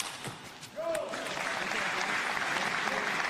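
A small crowd claps and cheers in a large hall.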